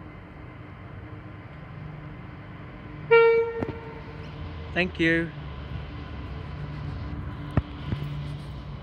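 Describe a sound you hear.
A diesel locomotive hauling a freight train rumbles as it approaches.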